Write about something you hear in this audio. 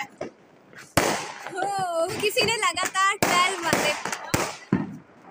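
Fireworks bang sharply overhead.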